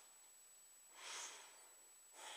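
A young man breathes out heavily, close by.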